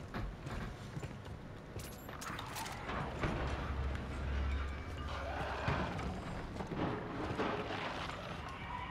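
A gun fires in rapid bursts of sharp shots.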